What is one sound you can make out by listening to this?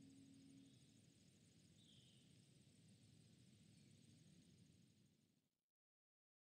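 A soft breeze blows outdoors.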